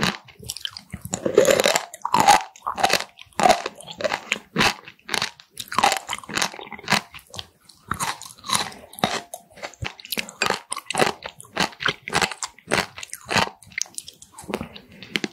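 A person chews wet, crunchy food close to a microphone with loud smacking sounds.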